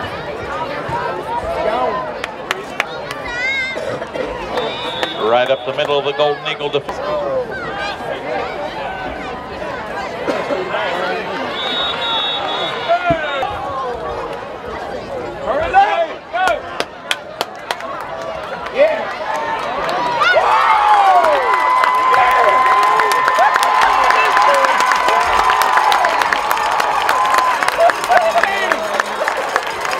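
A crowd in the stands cheers and shouts outdoors.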